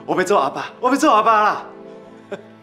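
A man speaks with excitement close by.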